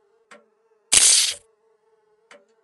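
A syringe gives a short sharp hiss.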